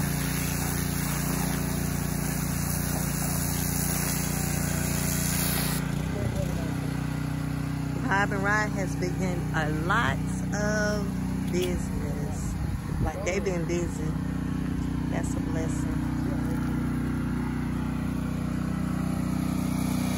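A pressure washer engine hums steadily.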